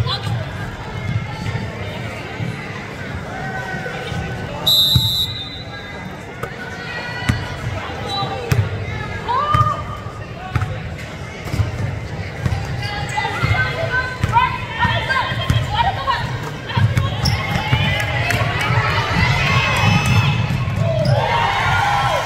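A crowd of spectators chatters and cheers in an echoing gym.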